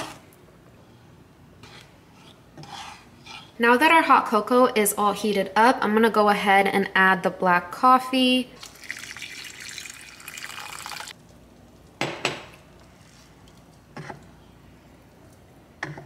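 A wooden spoon stirs and scrapes in a pot.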